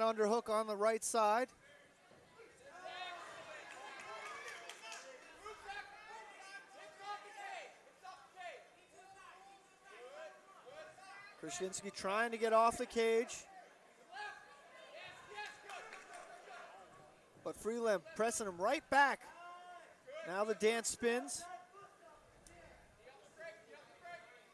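A crowd of men and women shout and cheer in bursts.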